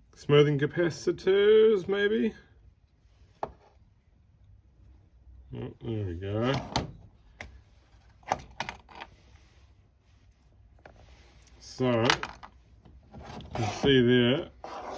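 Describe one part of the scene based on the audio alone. Plastic parts click and knock against each other in someone's hands.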